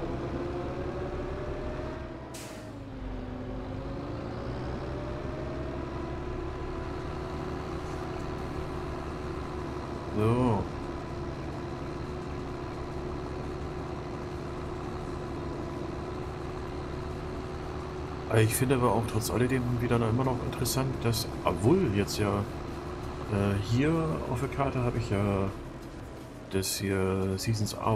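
A tractor engine hums steadily.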